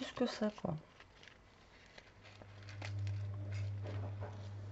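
Cellophane and paper crinkle softly under handling fingers.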